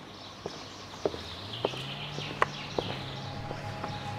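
Footsteps tread on stone and grass outdoors.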